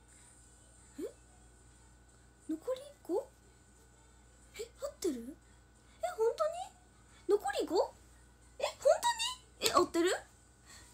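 A young woman speaks softly and casually close to a microphone, in short bursts.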